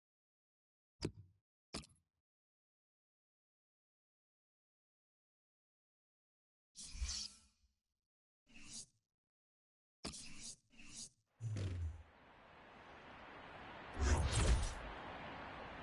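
Short menu clicks and whooshes sound several times.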